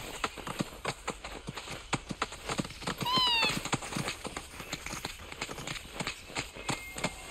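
Quick footsteps patter over grass and stone.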